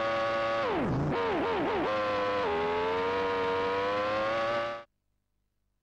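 A racing car engine whines at high revs, dropping in pitch as it shifts gears down and then holding steady.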